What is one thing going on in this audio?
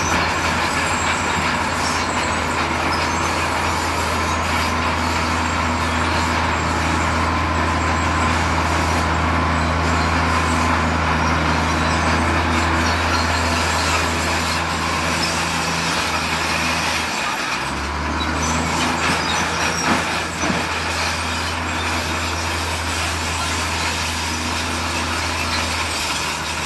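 A heavy diesel truck engine idles and rumbles steadily close by.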